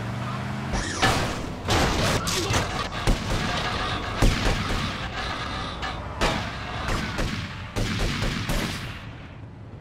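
A car crashes and scrapes against a wall.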